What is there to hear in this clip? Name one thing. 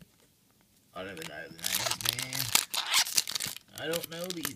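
Foil card packs crinkle and rustle.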